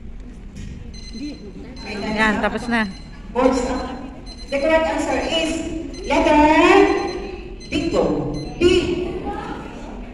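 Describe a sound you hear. A woman speaks loudly in a large echoing hall.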